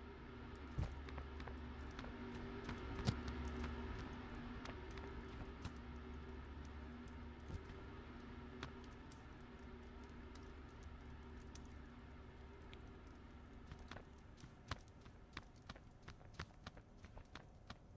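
A torch flame roars and crackles steadily.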